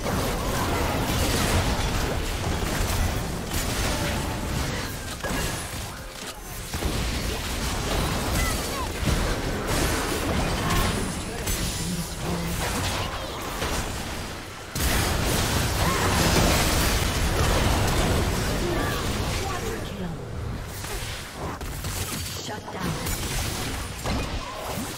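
Fantasy spell effects blast, whoosh and crackle in a fast video game battle.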